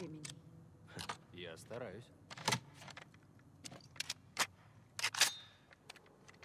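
Metal parts of a rifle click and clack as it is handled.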